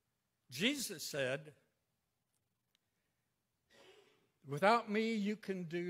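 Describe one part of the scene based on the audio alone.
An elderly man speaks calmly into a microphone, heard through a loudspeaker in an echoing hall.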